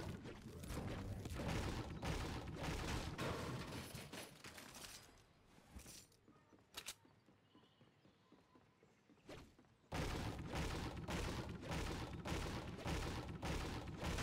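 A pickaxe strikes wood with repeated hard thwacks.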